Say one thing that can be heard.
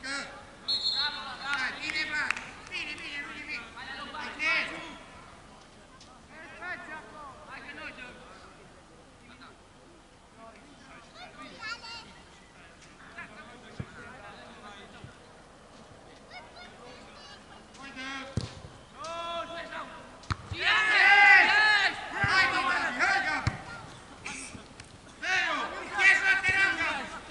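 Footballers shout to each other across an open field in the distance.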